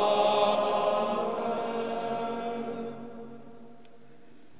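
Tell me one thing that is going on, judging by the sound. A group of men sings a long held chord that dies away, echoing in a large hall.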